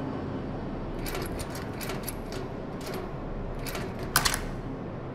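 A combination lock's dials click as they turn.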